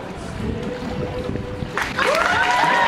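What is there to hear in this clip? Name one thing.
Water splashes as a man is lowered into a tub.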